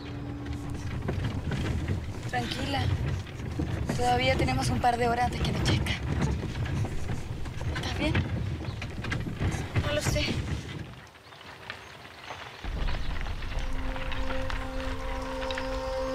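A horse-drawn carriage rumbles and rattles along.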